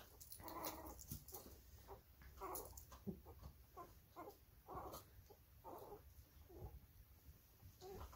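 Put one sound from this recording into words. A small dog rolls and wriggles on a blanket.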